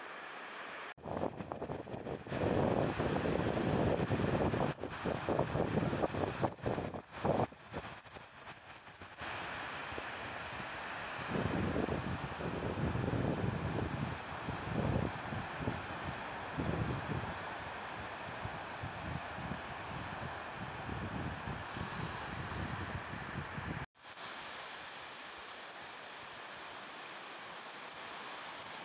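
Small waves break and wash onto a sandy beach.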